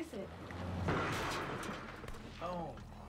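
A woman gasps sharply and breathes heavily.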